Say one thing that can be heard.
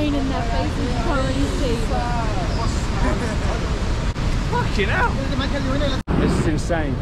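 Several men shout and call out together outdoors.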